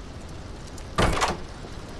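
A key turns in a lock with a loud click.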